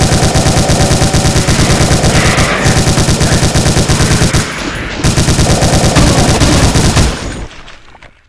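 A machine gun fires in rapid, steady bursts.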